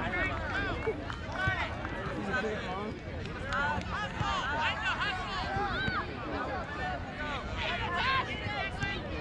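A crowd of adults and children chatters and calls out nearby outdoors.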